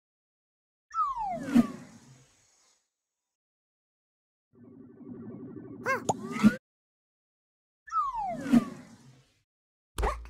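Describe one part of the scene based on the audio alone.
A game whoosh sweeps past.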